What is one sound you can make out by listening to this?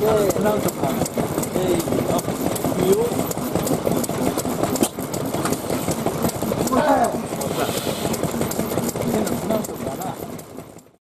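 An old stationary engine chugs and knocks rapidly and steadily.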